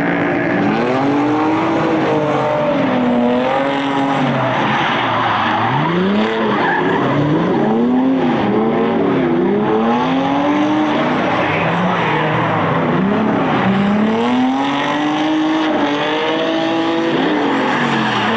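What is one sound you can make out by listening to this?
Tyres screech loudly on asphalt.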